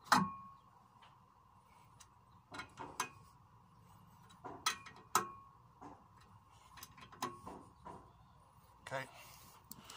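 A metal wrench clicks and clanks against a wheel hub.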